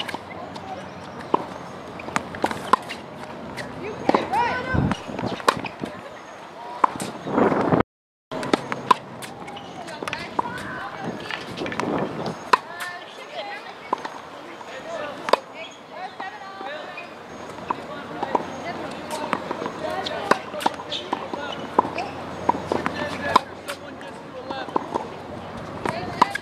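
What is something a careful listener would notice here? A tennis racket strikes a ball with sharp pops, again and again.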